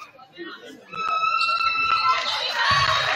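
A referee's whistle blows.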